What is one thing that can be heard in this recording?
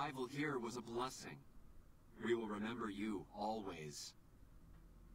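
A man speaks calmly in a deep, raspy voice.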